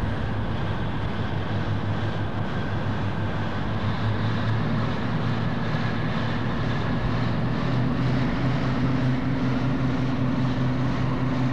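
A diesel locomotive engine idles with a steady low rumble.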